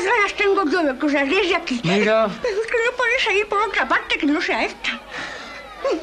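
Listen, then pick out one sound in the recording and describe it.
A young woman talks loudly and shrilly, close by.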